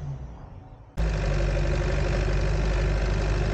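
A vehicle engine rumbles loudly and steadily close by.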